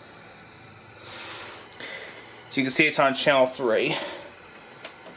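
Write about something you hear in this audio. A small television hisses with static.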